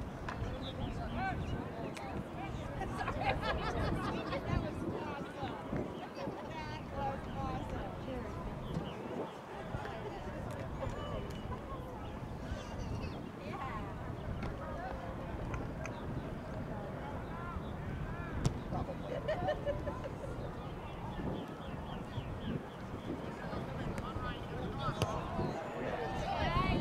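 Young players shout and call to each other across an open field, heard from a distance.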